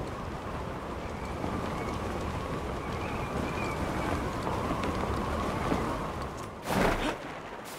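Wind rushes loudly past a falling parachutist.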